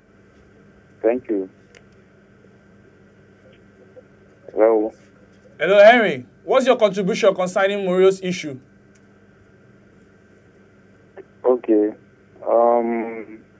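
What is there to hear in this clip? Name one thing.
A man speaks with animation through a microphone, in short bursts.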